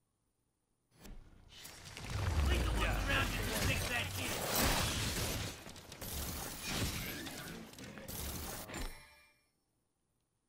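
Loud game fight sounds clash and bang.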